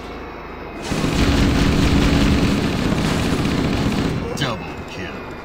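Gunfire and blasts roar loudly for a few seconds.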